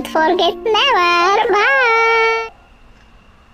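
A young woman sings a short, wavering melodic phrase up close.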